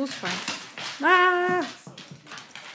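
A dog gives a short high yelp.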